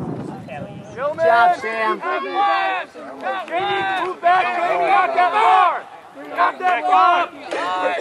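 Women in the crowd shout and cheer loudly with excitement.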